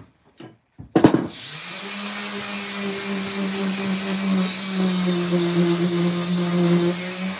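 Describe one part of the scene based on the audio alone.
A power tool whirs steadily.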